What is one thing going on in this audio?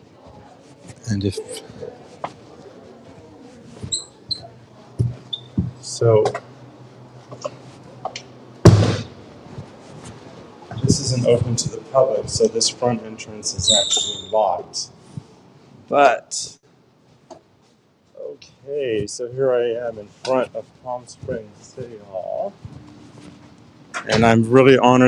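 A middle-aged man talks close up, in short bursts.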